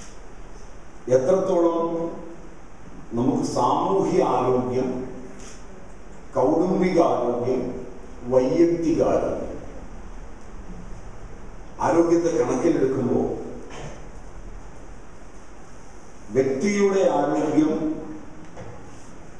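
A middle-aged man speaks slowly and emphatically into a microphone, in bursts with pauses.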